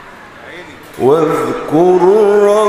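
A man chants loudly through a microphone in a long, wavering melody.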